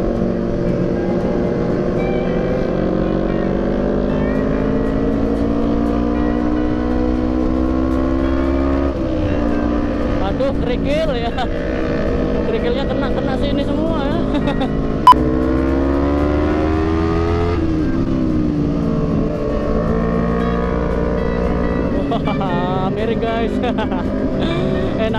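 A motorcycle engine drones close by, its pitch rising and falling as it speeds up and slows.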